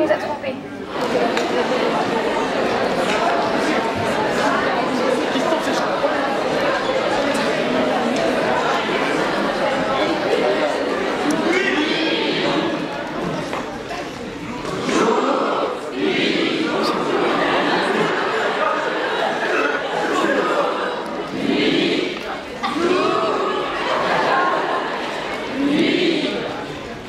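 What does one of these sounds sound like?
Young men shout and talk with animation in a large echoing hall.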